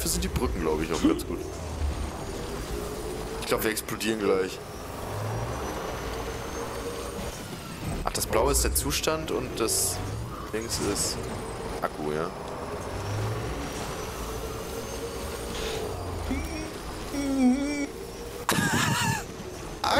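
A motorbike engine hums steadily as it drives over rough ground.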